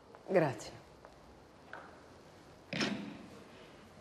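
A telephone receiver is set down with a clunk.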